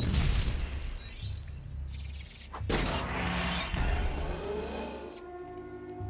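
Small coins scatter with rapid jingling clinks.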